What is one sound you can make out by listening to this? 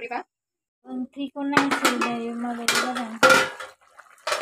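A metal lid clanks as it is lifted off a pan.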